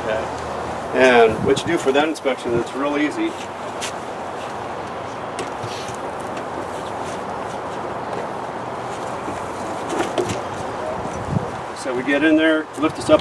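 A man talks calmly nearby outdoors.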